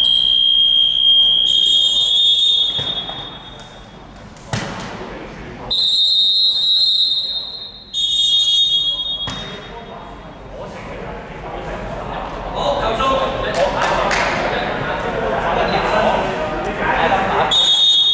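A referee's whistle blows several sharp, shrill blasts.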